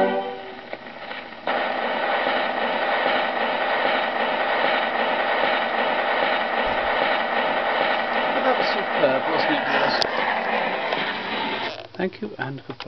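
An old gramophone plays music through a horn with a scratchy, crackling tone.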